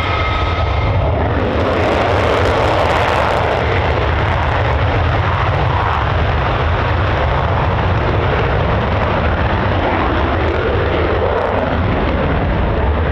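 A jet engine roars loudly and rumbles as a fighter jet powers up for takeoff.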